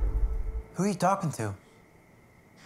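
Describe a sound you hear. A young man speaks up sharply, close by.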